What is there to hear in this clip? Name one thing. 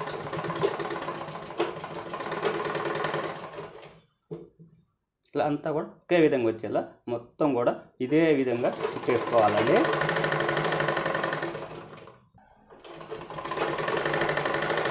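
A sewing machine whirs steadily, stopping and starting again.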